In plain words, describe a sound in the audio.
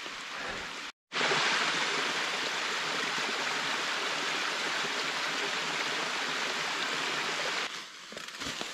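A small stream trickles and splashes over rocks.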